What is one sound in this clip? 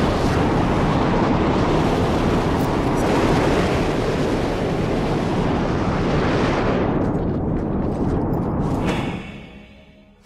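A strong wind roars and howls outdoors.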